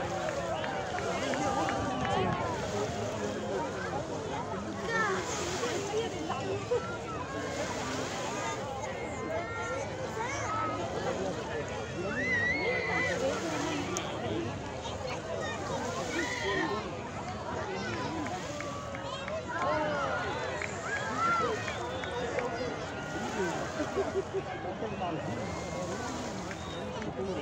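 A crowd of men, women and children chatters and calls out nearby outdoors.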